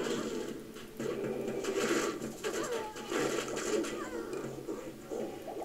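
Magic blasts burst with loud whooshing booms.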